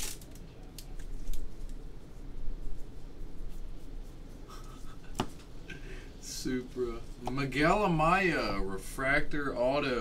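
Trading cards rustle and slide as they are handled.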